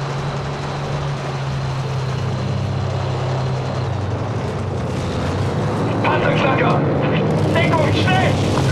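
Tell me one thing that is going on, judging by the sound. Tank tracks clatter over a street.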